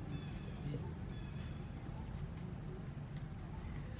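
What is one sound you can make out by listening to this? A baby monkey squeaks softly.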